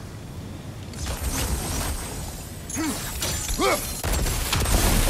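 A magic energy beam hums and crackles loudly.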